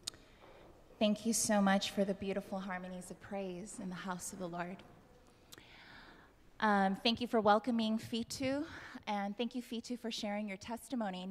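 A young woman sings loudly into a microphone.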